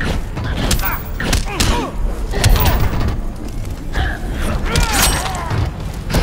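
Heavy punches and kicks thud and crack in quick succession.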